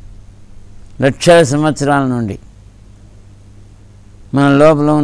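An older man chants in a long, drawn-out voice, close to a microphone.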